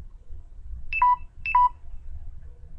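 A phone beeps twice.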